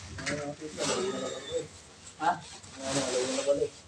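Plastic bubble wrap rustles and crinkles.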